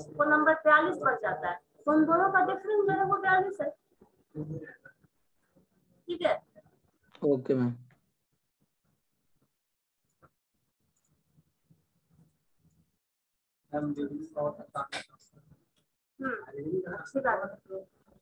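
A woman speaks calmly through an online call, explaining.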